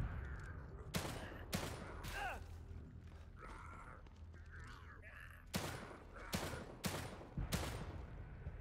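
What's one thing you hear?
Pistol shots ring out sharply.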